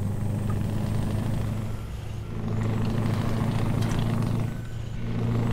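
A truck roars past in the other direction.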